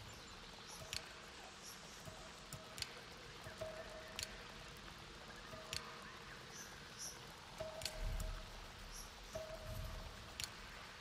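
Short interface clicks and soft chimes sound as menu items change.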